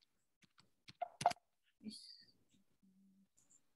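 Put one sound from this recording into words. Keyboard keys click as someone types.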